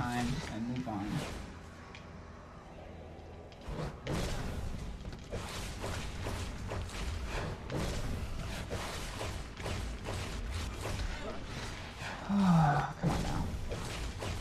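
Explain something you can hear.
Game fight sounds of blows, blasts and shattering crash repeatedly.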